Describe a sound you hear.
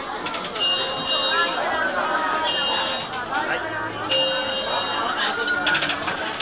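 Adults talk nearby outdoors.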